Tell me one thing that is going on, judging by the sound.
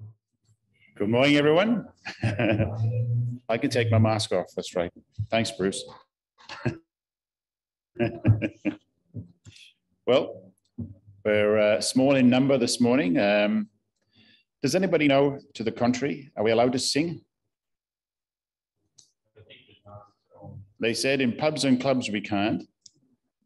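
An elderly man speaks calmly through a microphone in a slightly echoing room.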